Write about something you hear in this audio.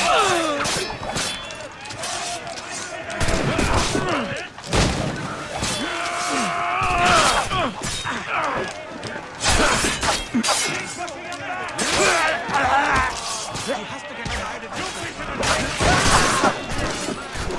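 Swords clash and clang in a fight.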